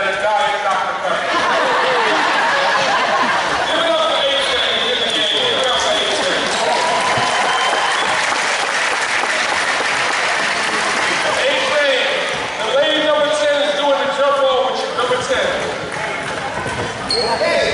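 A crowd cheers and murmurs in an echoing hall.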